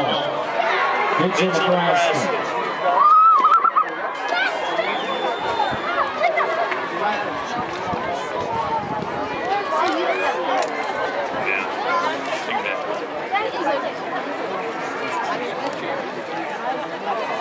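A large crowd cheers and chatters in an open-air arena.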